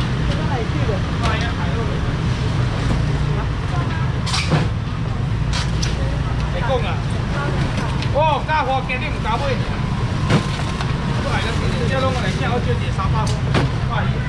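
A crowd chatters nearby.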